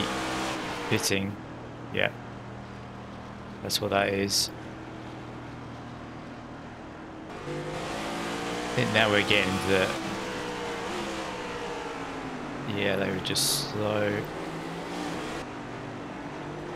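A race car engine drones steadily at speed.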